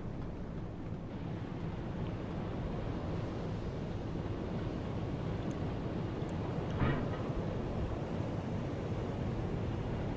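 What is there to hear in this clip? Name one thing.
Sea water rushes and splashes against a boat's hull.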